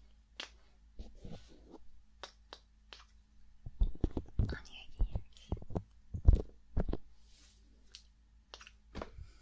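Hands rub together close to a microphone.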